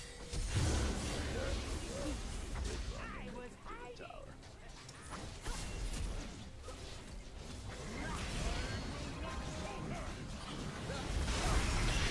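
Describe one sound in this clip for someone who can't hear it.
Game spells and attacks whoosh and blast during a fight.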